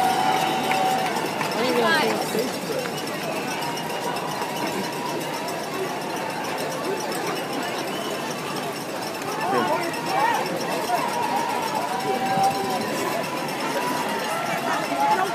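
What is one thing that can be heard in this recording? Many runners' feet patter on the road.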